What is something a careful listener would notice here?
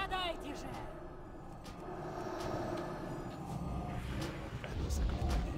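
Magic spells crackle and whoosh in a busy game battle.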